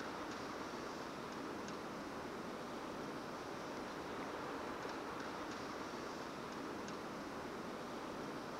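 Crutches tap on paving stones as a woman walks slowly.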